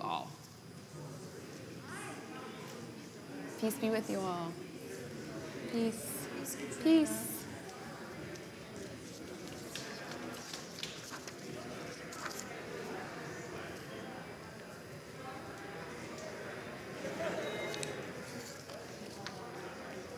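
A crowd of men and women chat and greet each other in a low murmur.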